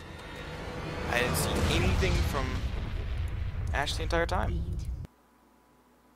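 A deep, roaring explosion rumbles and then cuts off abruptly.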